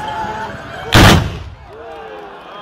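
A volley of muskets is fired at once in a single loud blast.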